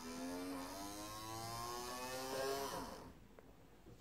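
A small electric motor whirs with a rising whine.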